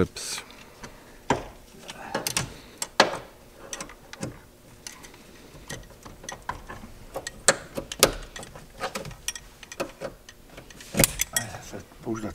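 Plastic parts click and knock as a seat belt is worked loose.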